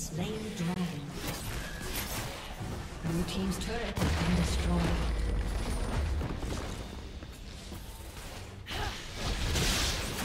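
Fantasy battle sound effects whoosh, crackle and clash.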